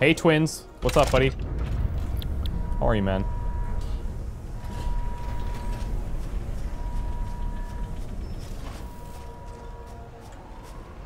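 A machine rumbles low as it sends a crate away.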